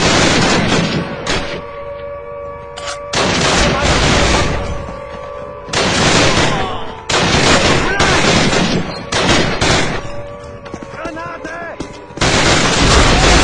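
Rapid gunfire bursts loudly, again and again.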